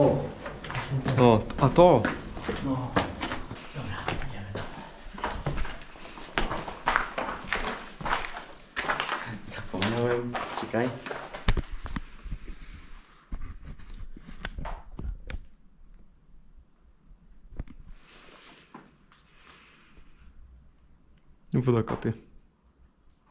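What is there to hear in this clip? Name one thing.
A young man talks quietly and close by.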